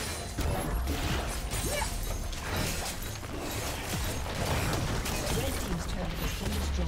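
Magic spells whoosh and crackle in a fast, busy fight.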